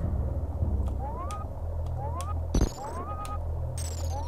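Short rising electronic beeps repeat at an even pace.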